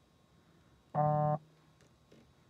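A young woman hums a short, high note.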